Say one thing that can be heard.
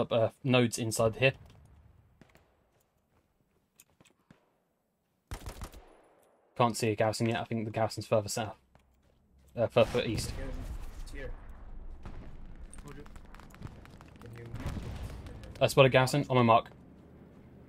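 Rapid gunfire rattles in short, loud bursts.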